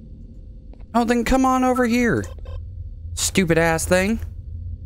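A man speaks with animation into a microphone, close up.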